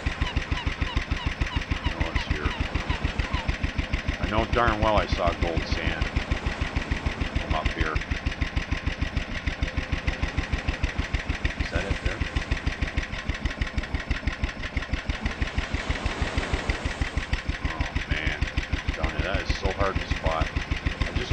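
A small outboard motor chugs steadily at a fast even pulse.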